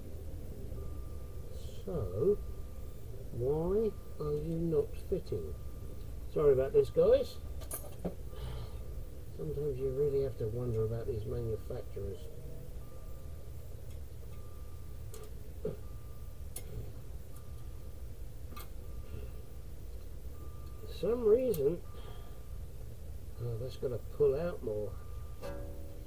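Small metal parts click and clink.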